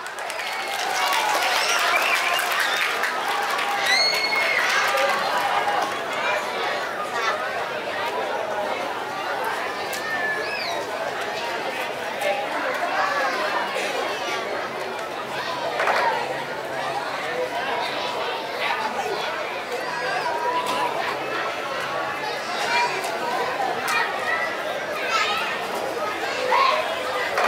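Children shout and squeal close by.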